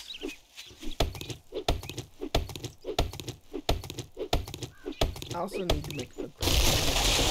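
A stone axe chops into a tree trunk with repeated hard thuds.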